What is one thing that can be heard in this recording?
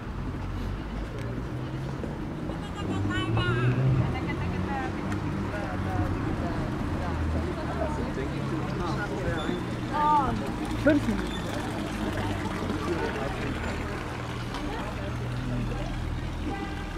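Water trickles from a fountain.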